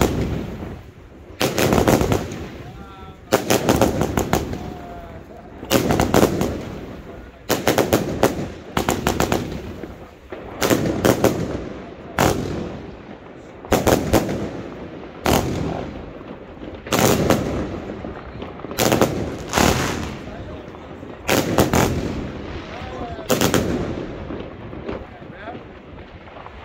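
Fireworks burst overhead with loud, crackling bangs and echo off nearby buildings, again and again.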